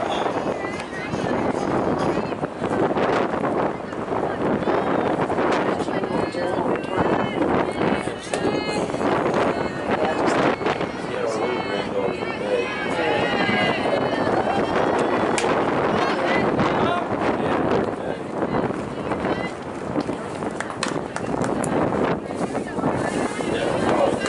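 Young women call out and chatter across an open outdoor field.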